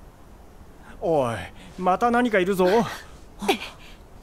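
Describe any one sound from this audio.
A young man speaks with animation.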